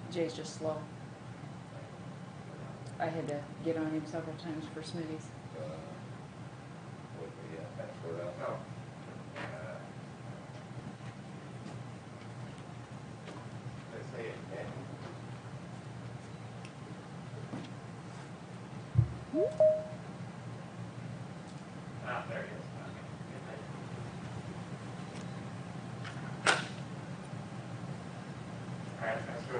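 People talk quietly at a distance in a room with a slight echo.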